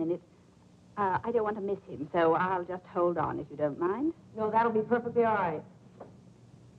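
A second woman speaks into a phone, close by.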